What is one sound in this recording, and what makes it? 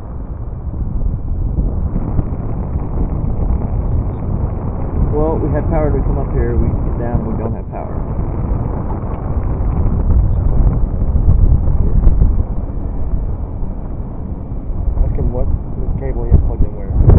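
Wind buffets a microphone loudly and steadily outdoors.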